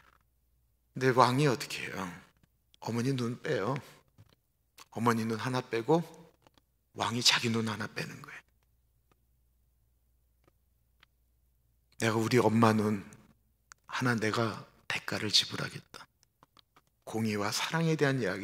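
A middle-aged man speaks with animation through a microphone, in bursts with pauses.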